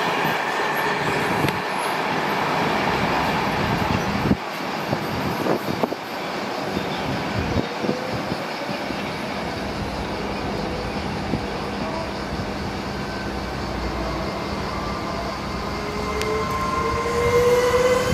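A train rumbles and clatters steadily along the rails.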